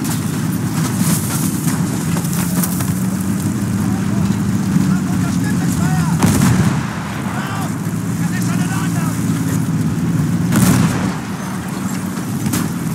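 A tank engine rumbles and its tracks clank steadily.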